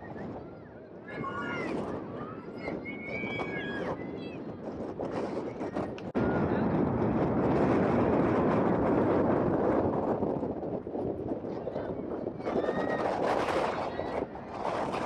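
Young women call out to each other from across a field.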